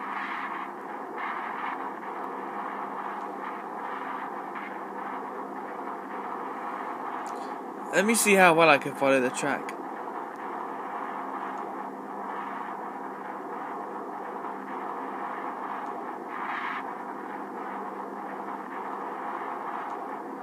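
A video game engine drones steadily through a small tablet speaker.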